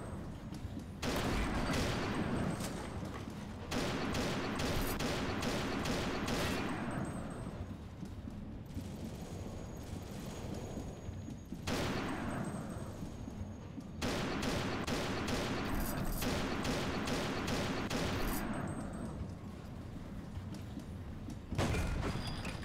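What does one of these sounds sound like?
A rifle fires loud single shots with a booming echo.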